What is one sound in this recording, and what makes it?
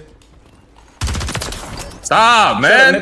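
Rapid gunshots ring out.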